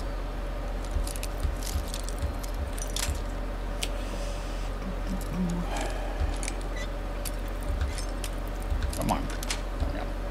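A metal pick scrapes and clicks inside a lock.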